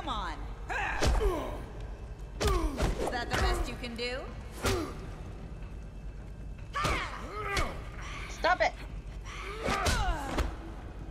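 Punches thud during a fight.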